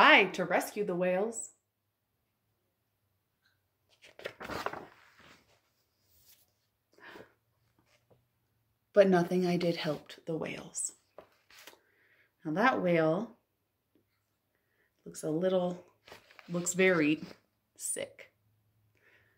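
A woman reads aloud calmly, close by.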